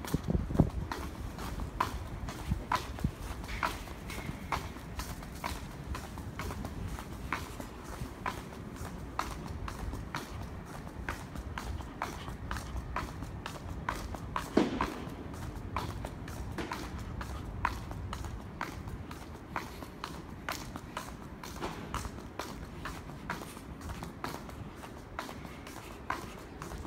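Footsteps tap steadily on paving stones, close by.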